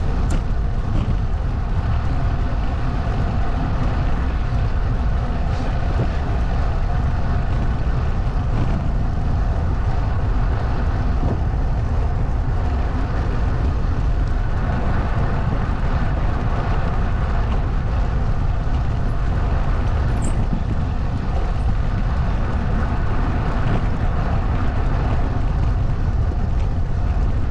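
Wind rumbles and buffets steadily outdoors.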